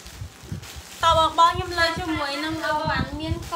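A young woman speaks in a high, animated voice close by.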